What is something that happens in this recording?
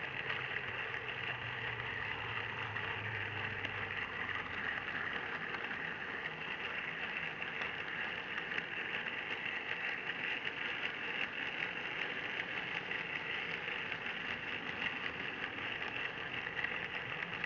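Model train wheels click and rattle over the rails.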